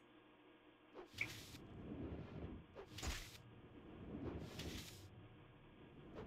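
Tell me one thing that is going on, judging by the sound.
A giant spider hisses and screeches in loud bursts.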